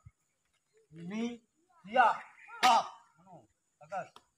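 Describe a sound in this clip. A man calls out commands loudly outdoors.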